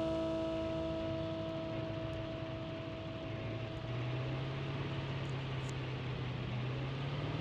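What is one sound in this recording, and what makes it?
A buggy engine rumbles steadily as it drives along.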